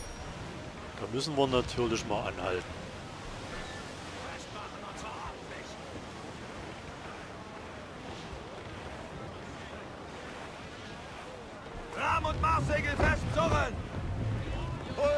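Waves and wind rush steadily around a sailing ship.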